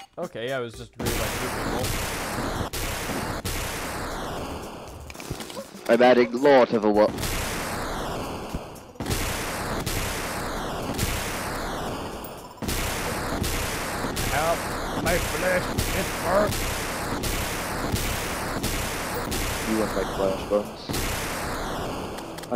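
A blaster fires rapid zapping shots in a steady stream.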